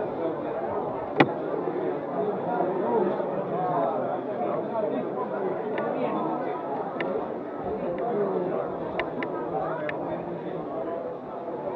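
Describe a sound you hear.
A crowd of men and women chatters outdoors, close by.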